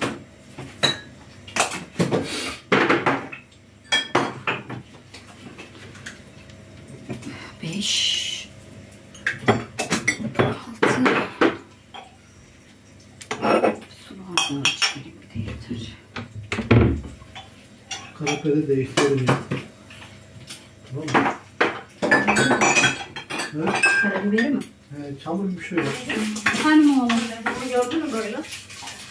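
A woman talks nearby in a lively way.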